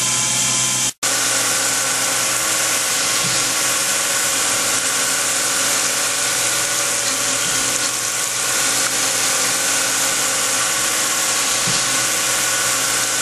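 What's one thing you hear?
Coolant sprays and hisses onto the metal.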